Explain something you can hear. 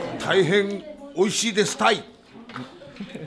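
A middle-aged man speaks loudly and animatedly close by.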